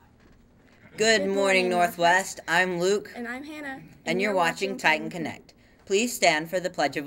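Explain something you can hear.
A teenage girl speaks cheerfully into a microphone.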